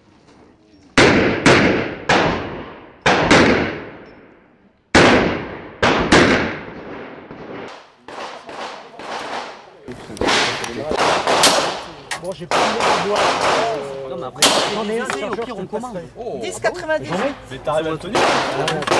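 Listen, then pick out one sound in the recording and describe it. Pistol shots crack sharply outdoors, one after another, each with a short echo.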